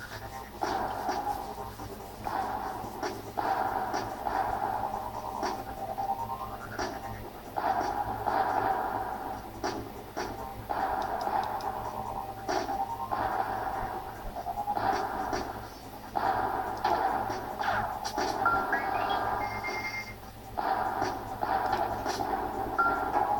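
Game explosions burst with crackling bangs through a small speaker.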